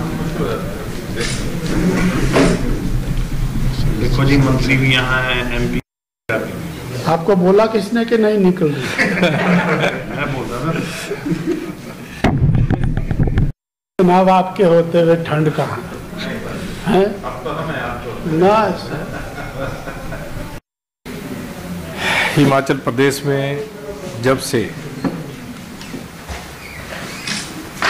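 A middle-aged man speaks calmly into microphones.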